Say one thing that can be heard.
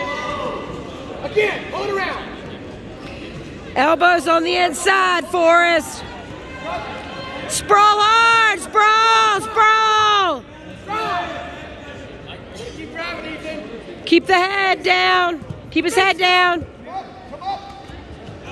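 Spectators shout loudly and excitedly in a large echoing hall.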